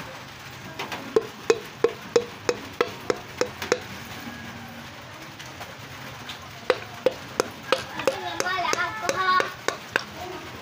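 Metal parts click rapidly as an engine crankshaft is turned by hand.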